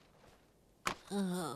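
An elderly woman speaks up calmly.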